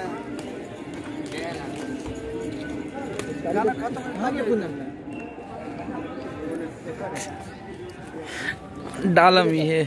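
Young people chatter and call out in the background.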